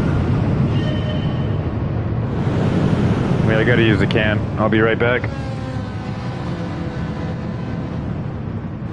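Race car engines roar and whine as the cars speed past.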